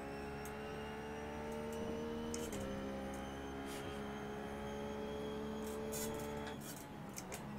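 A racing car engine runs at high revs.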